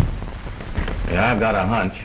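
Two men talk quietly.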